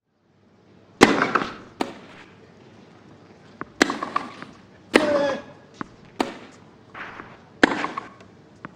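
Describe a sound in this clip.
A tennis ball is struck sharply by rackets in a rally.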